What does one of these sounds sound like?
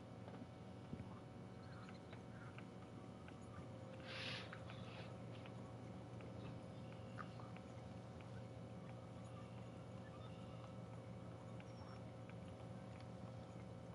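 A fishing reel whirs steadily as line is wound in.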